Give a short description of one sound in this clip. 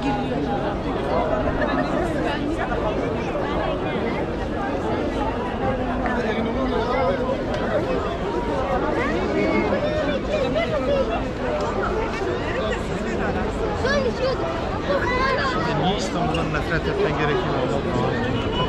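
A large crowd of men and women chatters all around outdoors.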